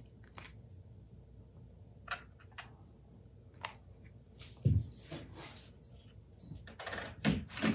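Small parts click and tap on a hard surface.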